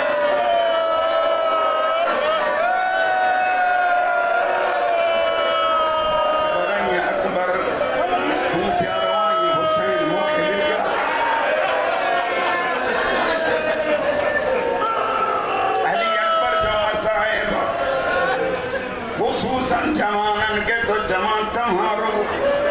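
A man chants loudly and mournfully through a loudspeaker.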